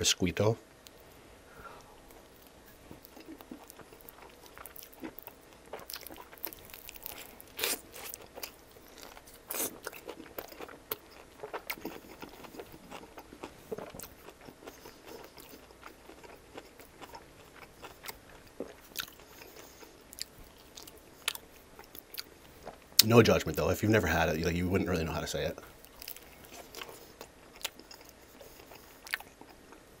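A man chews and smacks his lips close to a microphone.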